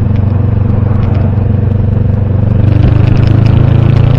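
A car passes by closely.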